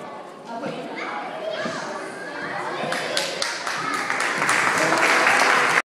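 Children chatter and shout excitedly in an echoing hall.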